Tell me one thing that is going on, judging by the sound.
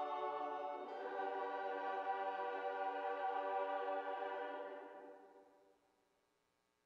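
A choir holds a final chord that rings out in a reverberant hall and fades.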